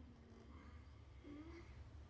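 A felt marker rubs and squeaks on a bathtub.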